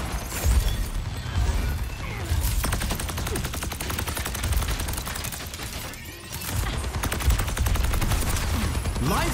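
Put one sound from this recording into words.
Explosions and impacts thud heavily.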